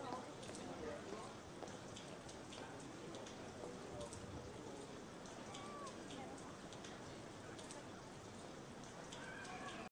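A small crowd of men and women murmurs and chats as they step outside.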